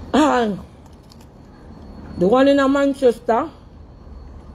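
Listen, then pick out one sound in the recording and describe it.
A young woman speaks expressively, close to a phone microphone.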